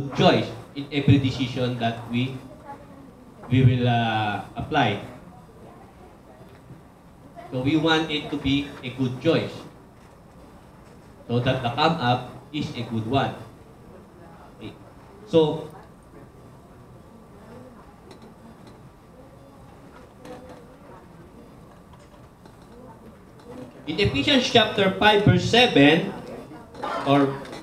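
A man speaks nearby in a calm, conversational voice, in short bursts with pauses.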